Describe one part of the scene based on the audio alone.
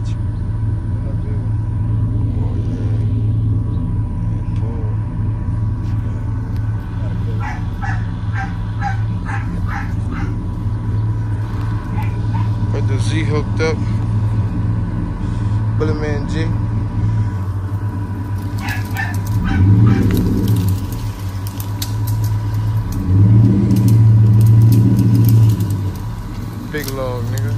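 A truck engine rumbles steadily nearby and revs up at times.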